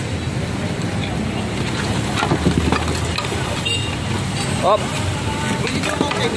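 Wooden boards clatter and bang as a cart is knocked apart.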